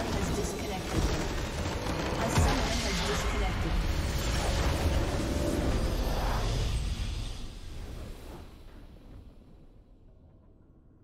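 A huge magical blast erupts with a deep roar and rumble, then slowly fades away.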